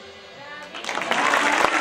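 A live band plays a final chord.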